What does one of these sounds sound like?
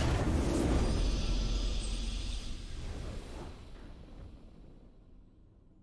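A triumphant victory fanfare plays and fades.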